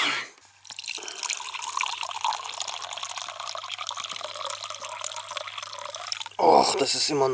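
Liquid pours steadily into a plastic cup.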